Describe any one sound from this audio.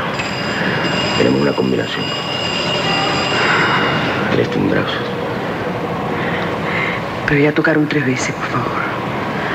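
A man speaks in a low voice close by.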